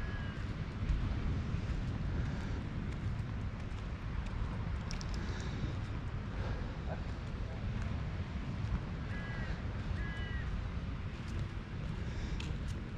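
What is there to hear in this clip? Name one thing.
Footsteps walk steadily on a paved path.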